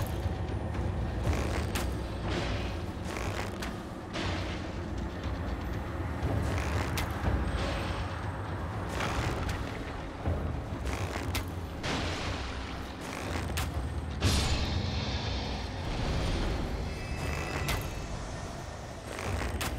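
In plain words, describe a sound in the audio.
Sword blows strike with sharp thuds.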